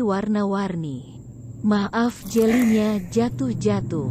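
Ice and jelly pieces tumble into a glass.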